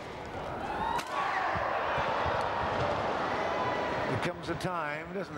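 A crowd cheers and applauds loudly in a large hall.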